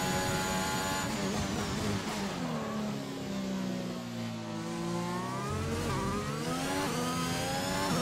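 A racing car engine drops in pitch as the car brakes hard for a corner, then revs back up.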